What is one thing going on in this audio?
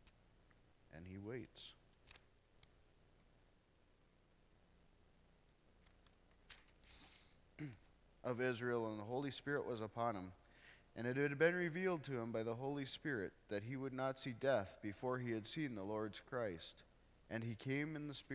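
A middle-aged man reads aloud calmly through a microphone.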